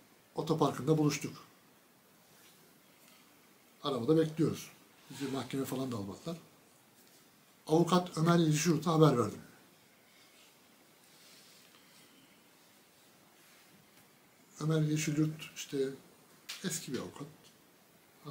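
A middle-aged man speaks calmly and close to the microphone, with pauses between phrases.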